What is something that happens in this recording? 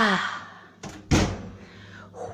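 An oven door shuts with a thud.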